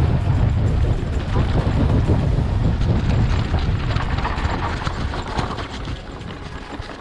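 Mountain bike tyres roll and bump over grass.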